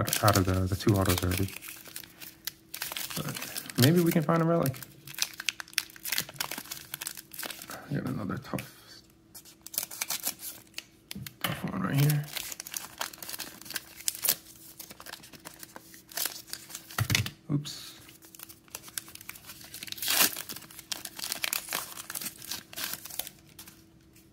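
Fingers rustle and slide trading cards in and out of plastic sleeves.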